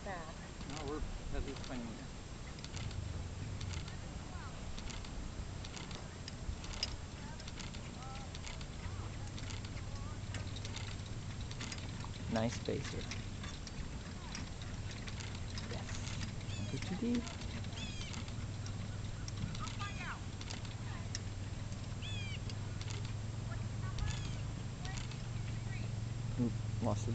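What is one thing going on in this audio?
A horse's hooves thud softly on grass at a trot.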